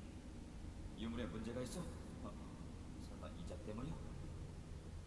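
A young man speaks calmly, close by.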